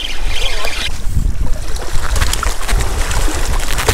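Water splashes as a fish thrashes in a landing net.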